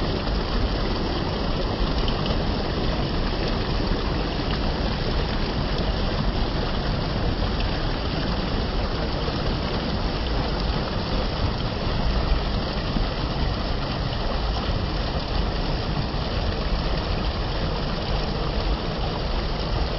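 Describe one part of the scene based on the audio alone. Water rushes and splashes steadily over a small weir close by.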